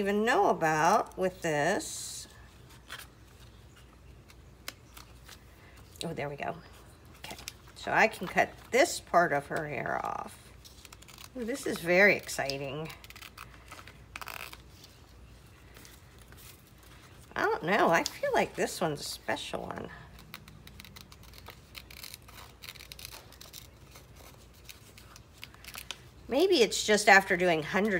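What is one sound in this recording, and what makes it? Paper rustles as hands handle it.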